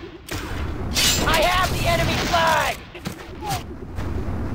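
Laser beams zap in quick bursts.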